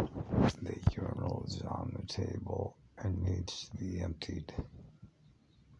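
An elderly man speaks slowly and hoarsely, close to the microphone.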